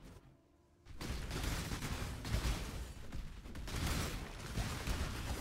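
Magic blasts crackle and boom in rapid bursts.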